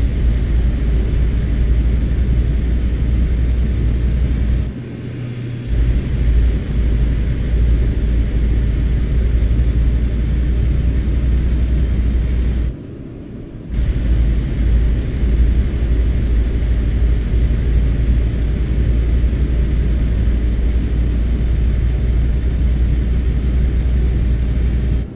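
A truck engine drones steadily at low pitch, dropping away twice for a moment.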